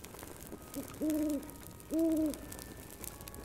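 An owl hoots twice.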